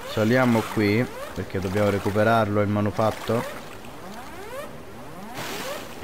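Water splashes softly as a person wades through it.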